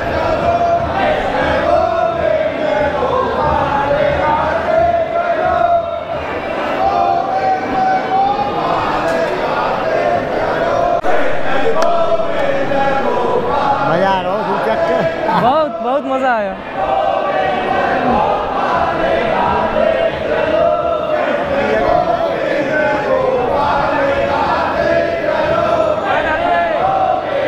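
A large crowd chants together in an echoing hall.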